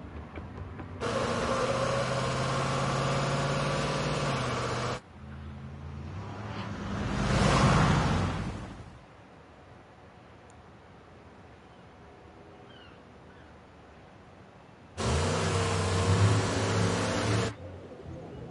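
A heavy truck engine rumbles and roars past.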